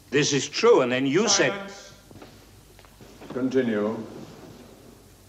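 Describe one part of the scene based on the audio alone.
A middle-aged man speaks emphatically, close by.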